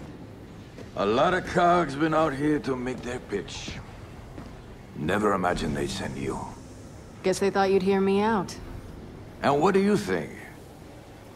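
A man speaks in a deep, calm voice, close by.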